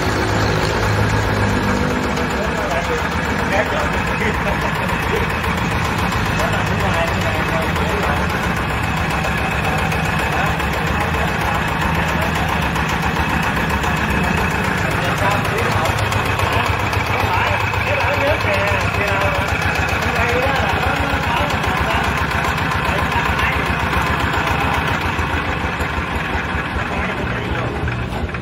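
A small diesel engine chugs steadily nearby.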